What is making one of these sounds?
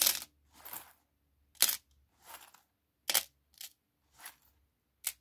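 An object rustles and scrapes in a hand in short, quick bursts.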